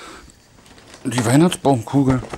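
A man speaks close by with animation.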